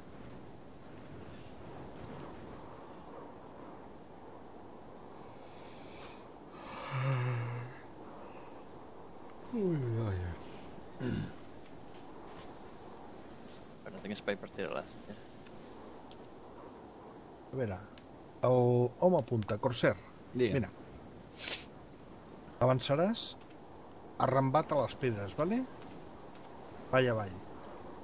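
Footsteps swish through grass at a steady pace.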